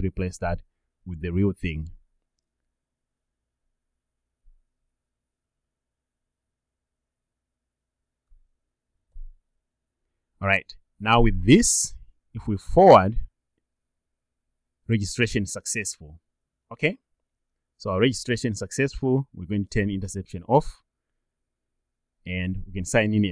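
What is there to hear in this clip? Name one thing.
A young man talks calmly and closely into a microphone, with pauses.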